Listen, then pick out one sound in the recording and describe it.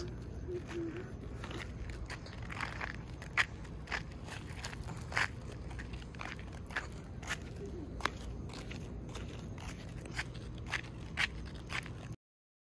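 Sandals slap on pavement with steady footsteps.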